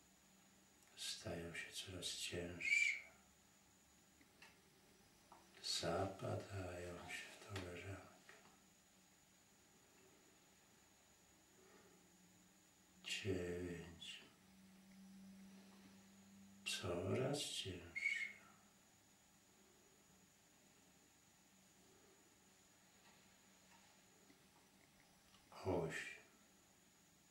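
An elderly man speaks slowly and calmly in short phrases, close by.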